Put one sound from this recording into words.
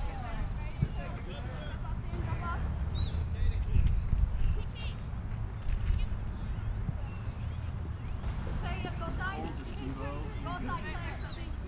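Men and women chat nearby outdoors.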